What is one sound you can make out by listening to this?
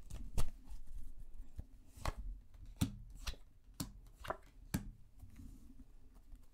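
Cards tap softly as they are laid on a table.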